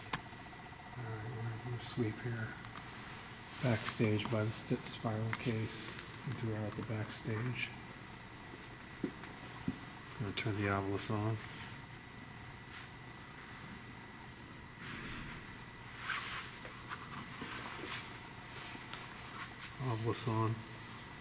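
A man speaks quietly and calmly close by, in short bursts.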